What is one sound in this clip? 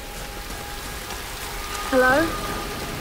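A waterfall rushes and splashes.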